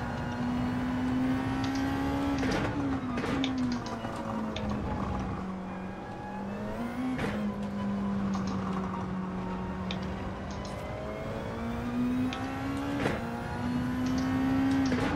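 A racing car engine roars steadily, its pitch dropping as the car slows and rising as it speeds up.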